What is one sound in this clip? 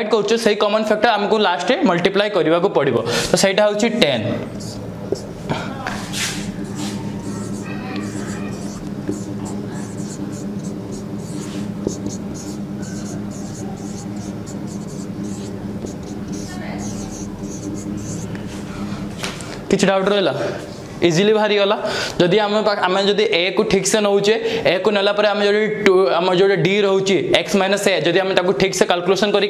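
A young man explains calmly and clearly, close by.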